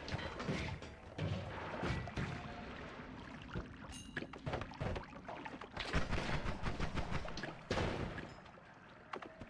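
Laser blasts zap and crackle in quick bursts.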